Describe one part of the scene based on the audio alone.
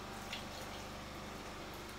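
Water runs from a tap onto hair.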